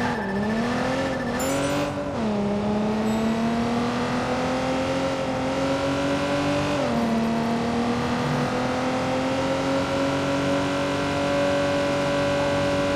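A sports car engine roars steadily, its pitch dropping at each gear change and slowly climbing as it speeds up.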